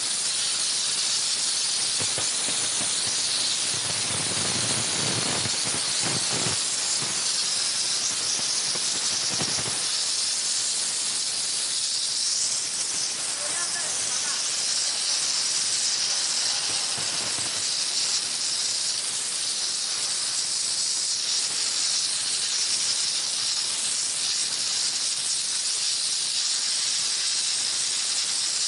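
A pressure washer sprays water in a steady, loud hiss.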